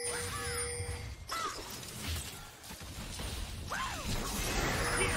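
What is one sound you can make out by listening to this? Game characters clash in combat with hits and impacts.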